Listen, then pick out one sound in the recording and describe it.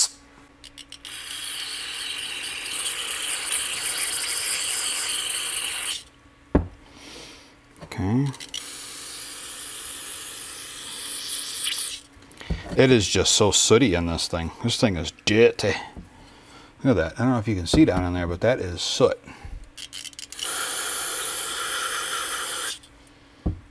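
An aerosol spray hisses in long bursts.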